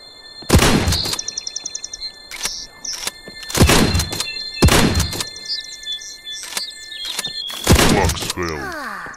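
A shotgun fires loudly several times.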